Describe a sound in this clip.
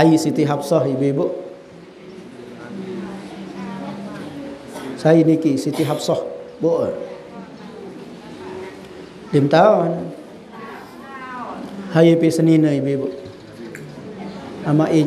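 A man recites in a chanting voice through a microphone, in bursts with pauses.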